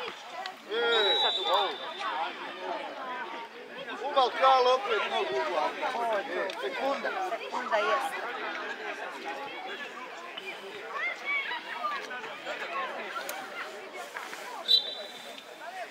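A referee's whistle blows short and sharp.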